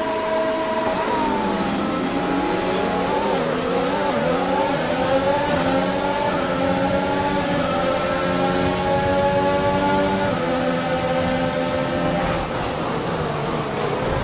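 A racing car engine roars and climbs in pitch through the gears.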